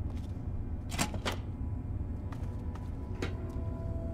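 A door creaks open with a clunk.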